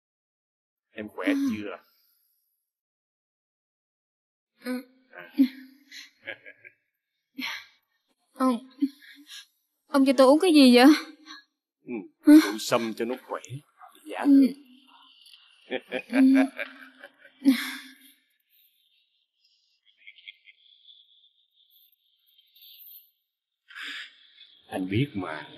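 A man speaks softly and coaxingly, close by.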